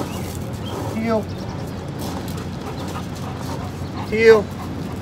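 A man calls out short commands to a dog.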